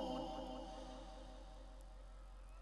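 An elderly man chants loudly into a microphone, heard through loudspeakers.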